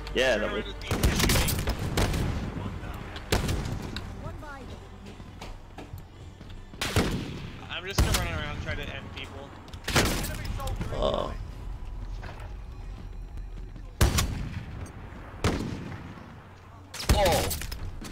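A rifle fires loud shots.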